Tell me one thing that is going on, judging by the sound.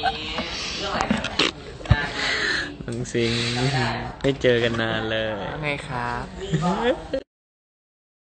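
A young man talks and laughs with animation close to a phone microphone.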